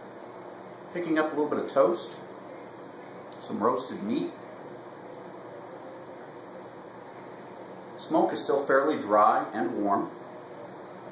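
A middle-aged man speaks calmly and close by, in short bursts.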